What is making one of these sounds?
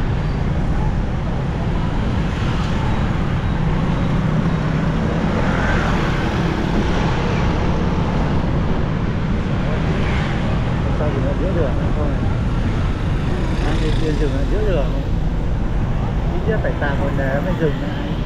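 Wind rushes steadily past, loud and rumbling.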